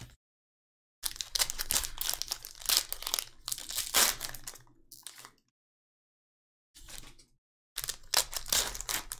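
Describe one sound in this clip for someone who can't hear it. A foil wrapper crinkles and tears as hands open a pack.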